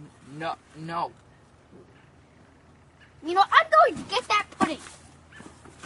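A teenage boy talks with animation close by.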